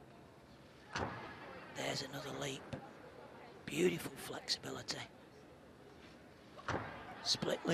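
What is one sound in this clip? A gymnast's feet thud onto a wooden balance beam.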